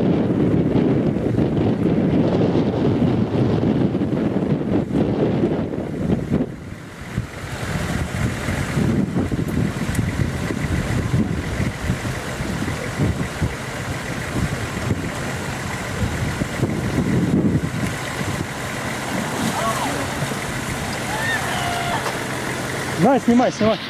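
Water splashes and sloshes around car wheels in a river.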